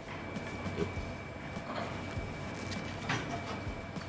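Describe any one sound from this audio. Crusty flatbread tears apart.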